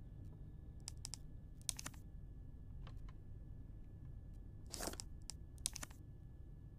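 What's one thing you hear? Short menu clicks and chimes sound.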